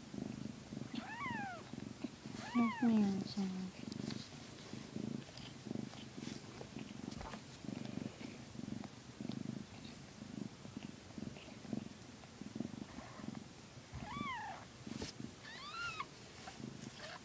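Newborn kittens squeak in high, thin cries.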